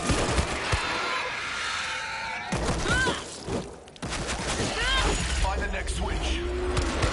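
Heavy blows thud and smack in a close fight.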